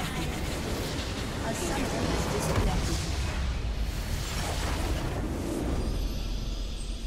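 A large building explodes with a deep, roaring blast.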